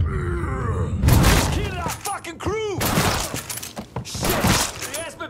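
A shotgun fires loud, booming blasts several times.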